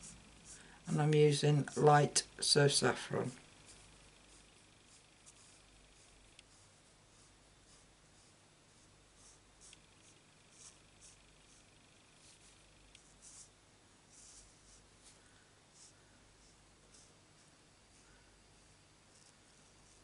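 A felt-tip marker scratches across card stock.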